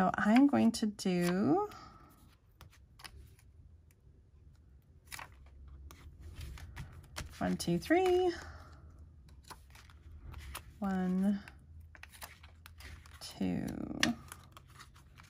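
Paper cards rustle and slide against each other.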